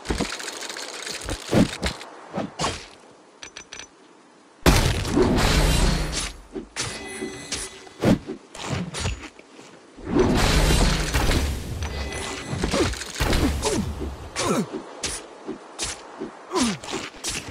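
Sword strikes hit with sharp clangs.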